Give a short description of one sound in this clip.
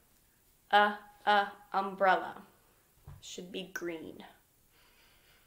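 A young woman speaks calmly and slowly, close to a microphone.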